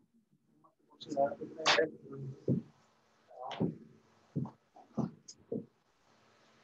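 A man speaks through an online call, in short bursts.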